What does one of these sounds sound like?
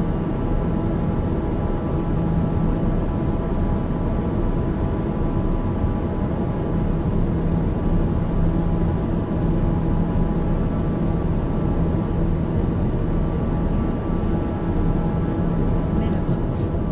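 A single-engine turboprop drones steadily in cruise, heard from the cockpit.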